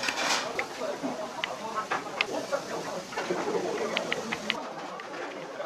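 A metal spoon scrapes rice out of a stone bowl with light clicks and scrapes.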